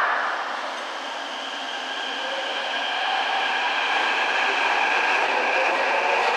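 A subway train pulls away, its motors humming louder as it speeds up in an echoing underground hall.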